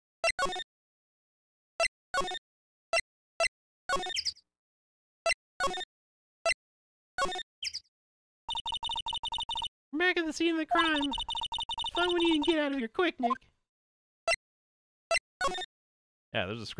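Short electronic chimes sound as menu choices are made.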